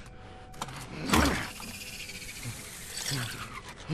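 A chainsaw roars into life and revs.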